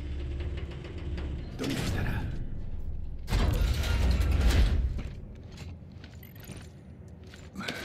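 Heavy armoured footsteps thud and clank on a metal floor.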